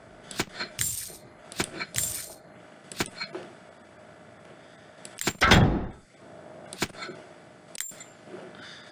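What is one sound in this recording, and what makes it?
Short clicks sound as items are picked up and dropped.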